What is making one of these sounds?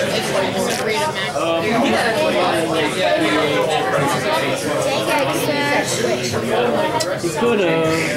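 Playing cards slap and shuffle softly in someone's hands.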